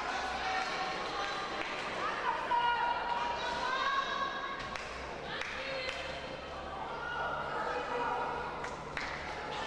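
Young women players call out to each other.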